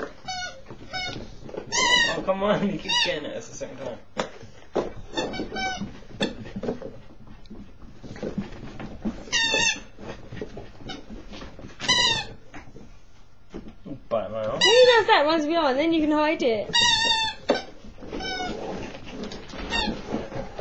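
A small puppy yips and barks in short, high bursts.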